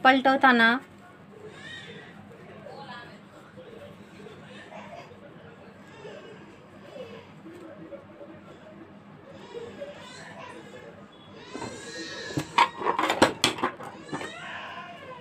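Cloth rustles as it is handled.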